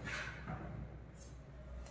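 Chalk scratches and taps on a blackboard.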